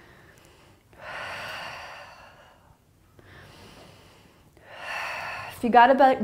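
A woman breathes out audibly in long, steady breaths.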